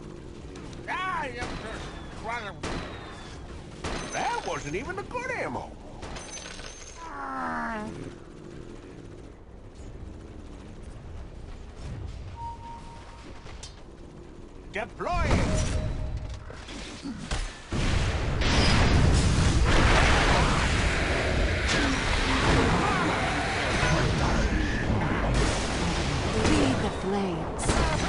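Game spells and battle effects crackle and boom.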